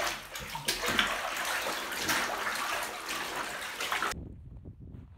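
Water churns and splashes loudly in a tub.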